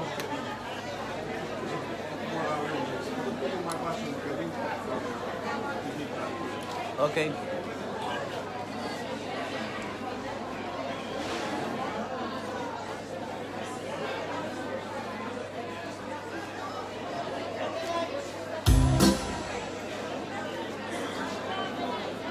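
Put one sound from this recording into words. A large outdoor crowd of men and women chatters steadily all around.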